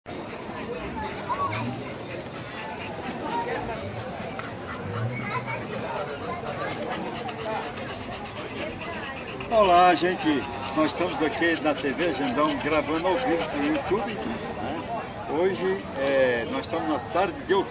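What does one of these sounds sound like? A crowd murmurs in the background outdoors.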